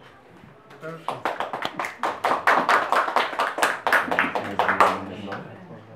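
A small crowd claps their hands.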